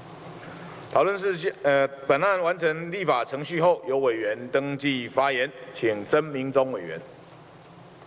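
A man speaks formally into a microphone over loudspeakers in a large hall.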